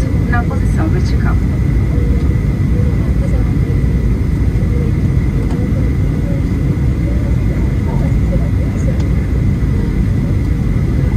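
A high, steady engine whine hums beneath the roar.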